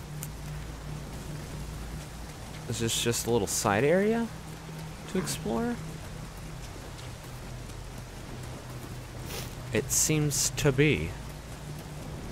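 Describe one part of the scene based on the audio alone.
Heavy rain falls steadily.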